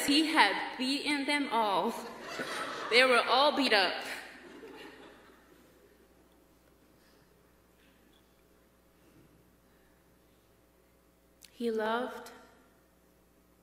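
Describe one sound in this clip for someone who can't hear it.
A young woman speaks through a microphone in a large echoing hall, pausing between phrases.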